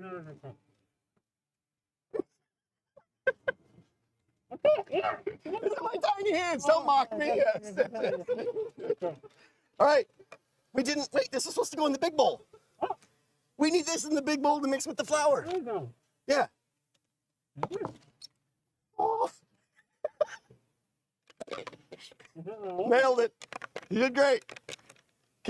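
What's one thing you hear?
Two men talk and laugh with animation close by.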